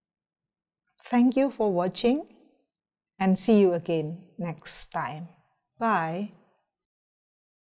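A middle-aged woman speaks calmly and close to a microphone.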